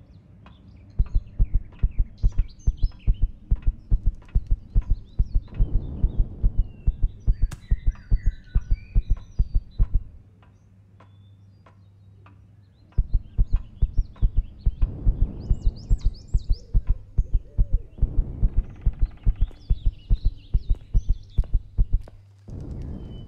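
Heavy footsteps thud quickly and evenly on hard ground.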